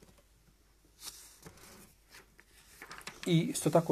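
A middle-aged man reads aloud calmly into a microphone.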